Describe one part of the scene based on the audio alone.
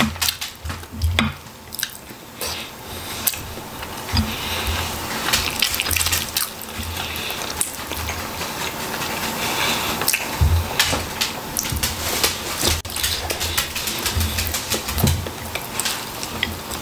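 A man chews and smacks his lips loudly, close up.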